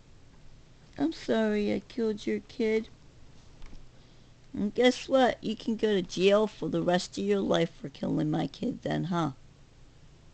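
A middle-aged woman speaks close to the microphone.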